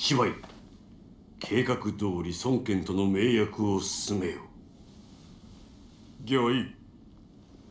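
A man speaks in a deep, commanding voice.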